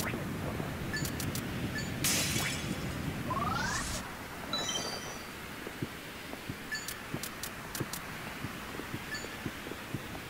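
Soft menu clicks tick repeatedly.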